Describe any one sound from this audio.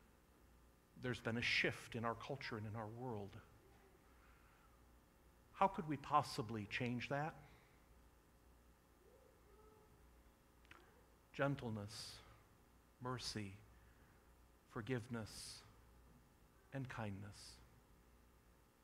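A man speaks calmly in short phrases through a microphone in a large echoing hall.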